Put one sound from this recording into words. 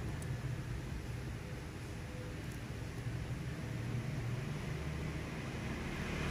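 A metal watch bracelet clinks softly as it is handled.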